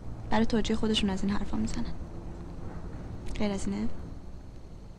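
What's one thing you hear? A young woman speaks softly and calmly close by.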